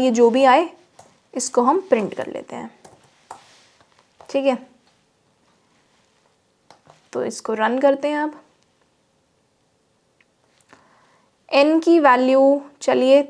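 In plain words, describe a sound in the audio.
A young woman speaks calmly and closely into a microphone, in short bursts with pauses.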